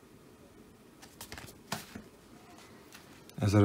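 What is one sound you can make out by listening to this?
Stacks of comic books slide and tap on a wooden surface.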